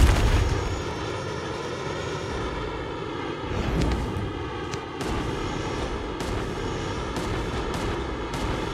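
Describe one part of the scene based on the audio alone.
Wind rushes past.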